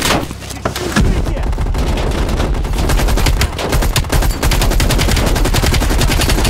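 A machine gun fires rapid bursts in a narrow echoing passage.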